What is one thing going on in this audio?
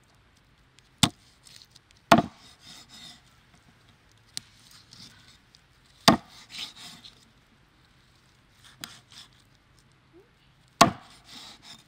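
A cleaver chops through meat and bone onto a wooden board with sharp thuds.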